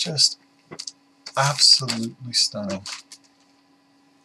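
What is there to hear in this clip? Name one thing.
A middle-aged man speaks close to a microphone with animation.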